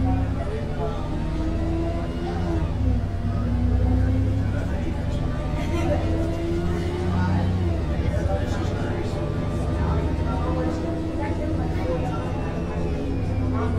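A bus engine hums steadily while driving.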